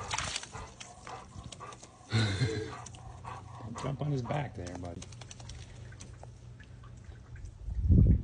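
A dog paddles and splashes through shallow water.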